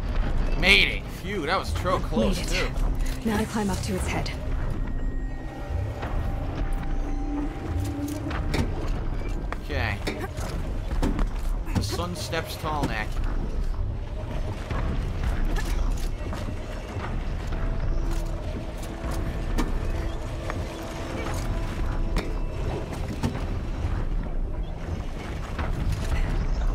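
Metal clanks and scrapes as a climber grabs onto a huge machine.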